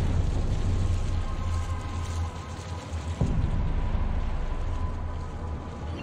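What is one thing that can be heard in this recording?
Water pours from a pipe and splashes steadily.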